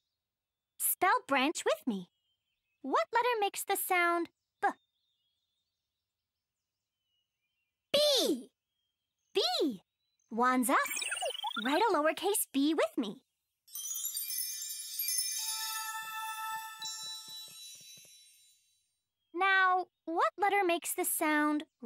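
A young girl speaks with animation.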